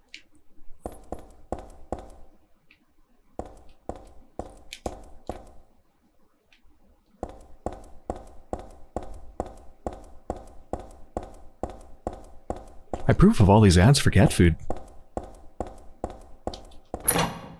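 Footsteps run on a tiled floor.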